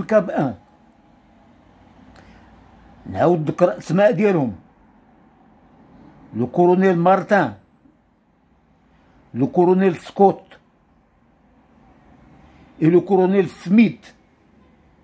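An elderly man speaks slowly and calmly, close to a microphone, in short bursts with pauses.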